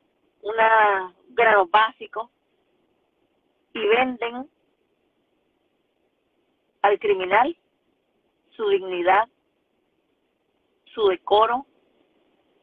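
A middle-aged woman speaks close by in short, calm phrases with pauses between them.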